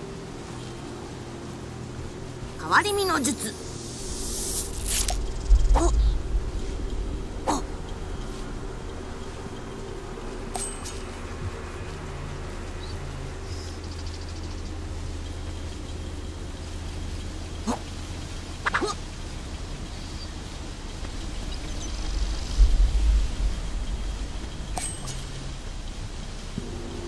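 Footsteps patter on grass.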